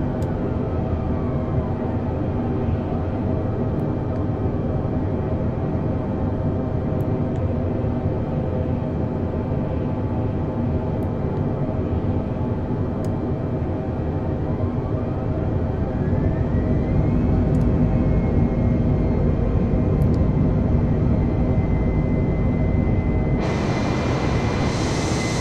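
Jet engines drone steadily in a cockpit.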